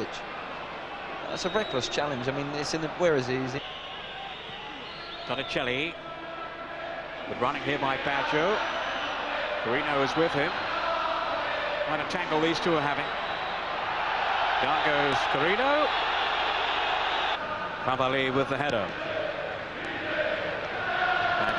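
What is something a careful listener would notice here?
A stadium crowd murmurs and roars steadily in the distance.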